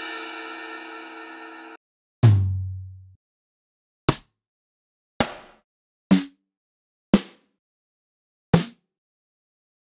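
Single electronic drum hits and synth notes play one at a time with pauses between.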